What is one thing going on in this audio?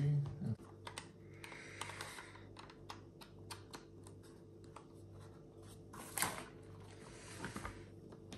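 A small plastic case clicks and taps in someone's hands.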